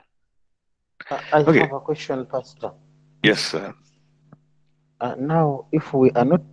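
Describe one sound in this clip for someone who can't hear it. Another man speaks over an online call.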